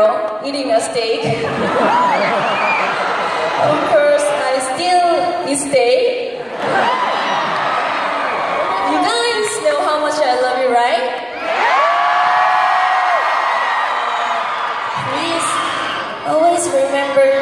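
A young woman speaks with animation through a microphone and loudspeakers in a large echoing hall.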